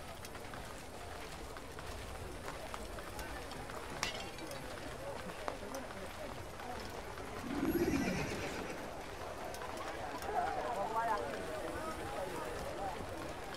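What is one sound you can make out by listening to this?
Footsteps shuffle softly on dirt as a group walks slowly.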